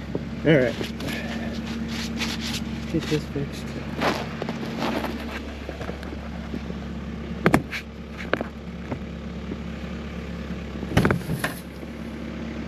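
Snow and ice scrape and knock against metal.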